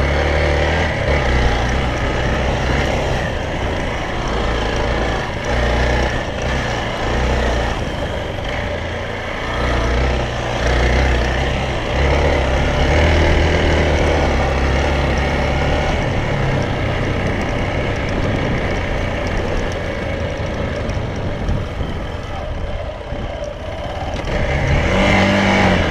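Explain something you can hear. Tyres crunch over rough dirt and grass.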